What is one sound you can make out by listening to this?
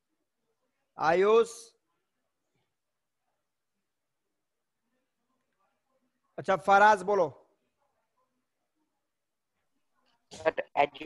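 A man speaks calmly in short bursts through a headset microphone, as in an online call.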